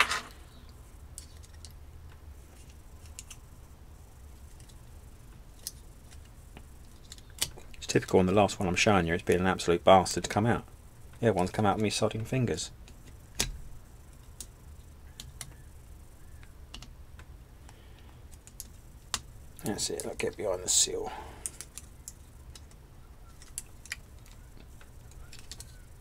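Small metal parts click and scrape softly as fingers press them into place.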